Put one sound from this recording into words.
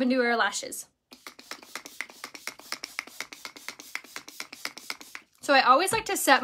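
A spray bottle hisses in quick bursts.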